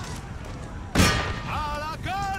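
A cannon booms loudly.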